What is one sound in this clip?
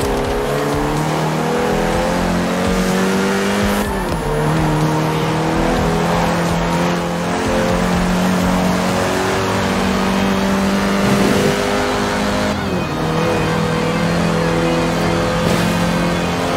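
A car engine roars steadily at high revs, dropping briefly at each gear change.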